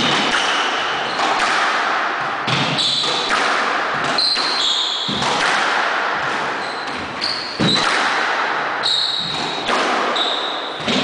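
Rubber shoes squeak sharply on a wooden floor.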